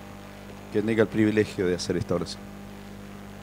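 A man speaks into a microphone, heard through loudspeakers in a large echoing room.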